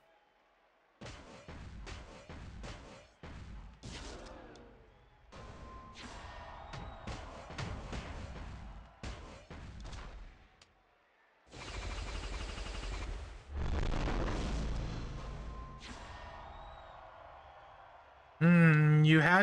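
Game sound effects of blows and crashes ring out in bursts.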